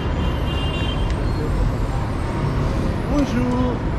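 A motor scooter rides past close by.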